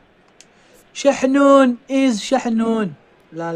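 A young man talks excitedly close to a microphone.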